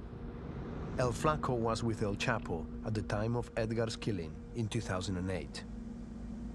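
A man speaks calmly and close by inside the car.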